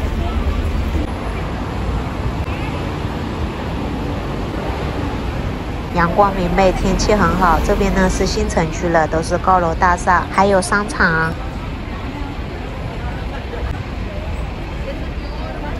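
Traffic rumbles steadily on a busy road below.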